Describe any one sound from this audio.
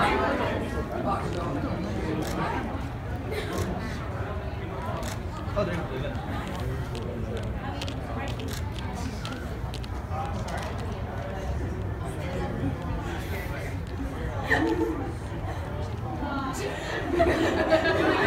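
An audience murmurs and chatters nearby.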